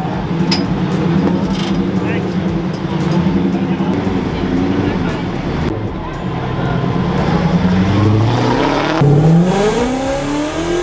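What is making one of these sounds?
A car engine rumbles loudly nearby.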